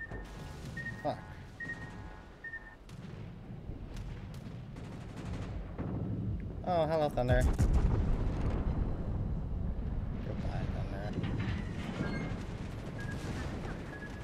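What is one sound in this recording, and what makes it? Naval guns boom heavily.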